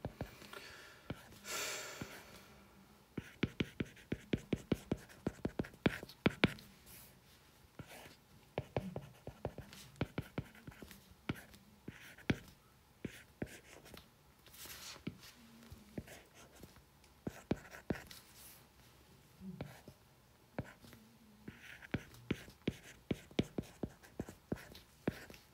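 A stylus taps and scratches on a glass tablet.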